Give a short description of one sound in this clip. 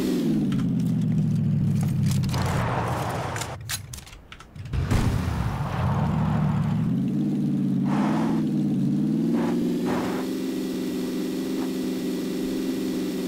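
A car engine drones steadily, dropping away briefly and then revving back up.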